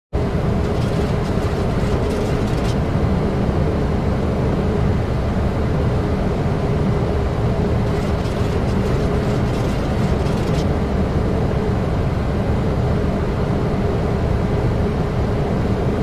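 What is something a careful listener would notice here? Jet engines drone steadily with a low, constant roar.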